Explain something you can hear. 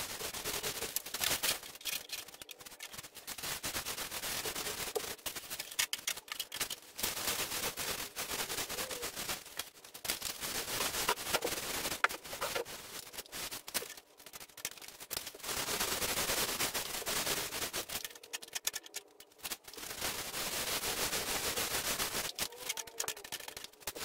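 A paint roller rolls against a textured ceiling with a soft, sticky crackle.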